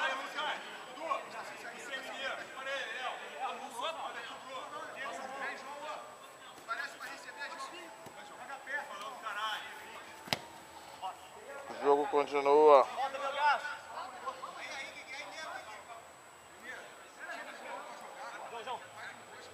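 Men shout and call to each other outdoors during a football game.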